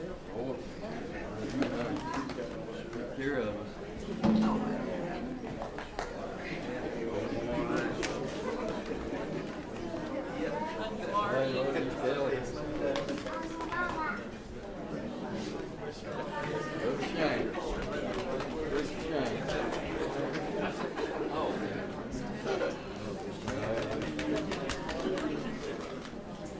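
Many men and women chat and murmur at once.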